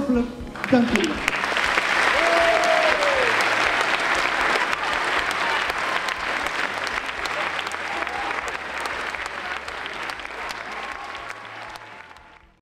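A crowd of children cheers and claps loudly.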